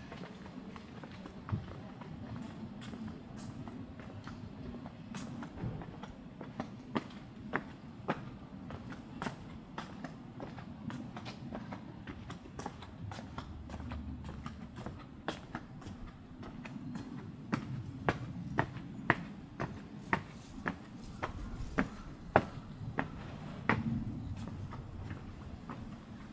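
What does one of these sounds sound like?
Footsteps tread steadily on stone paving and steps outdoors.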